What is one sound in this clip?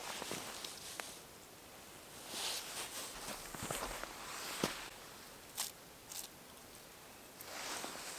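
Lichen rustles as a hand pulls it from tree bark.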